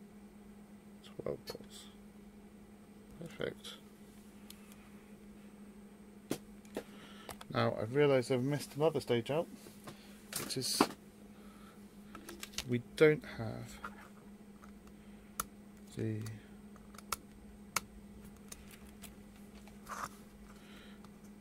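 Small clicks and taps come from a circuit board and meter probes being handled.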